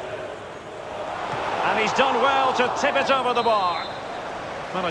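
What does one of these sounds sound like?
A stadium crowd roars and chants loudly, then dies down.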